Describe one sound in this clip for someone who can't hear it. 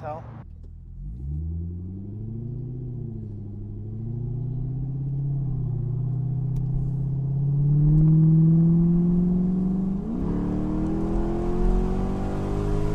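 A car engine hums from inside the car and climbs in pitch as it speeds up.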